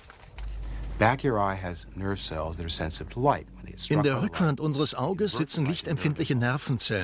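A middle-aged man speaks calmly and with animation, close by.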